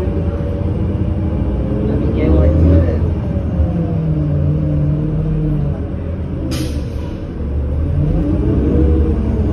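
A bus rattles and creaks while moving.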